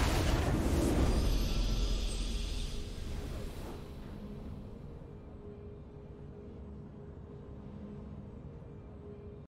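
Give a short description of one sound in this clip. A triumphant victory fanfare swells and then fades to a low hum.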